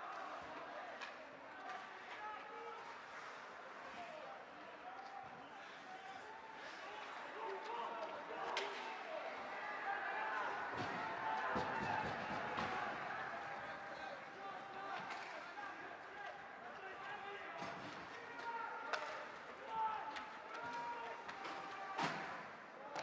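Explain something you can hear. Hockey sticks click against a puck.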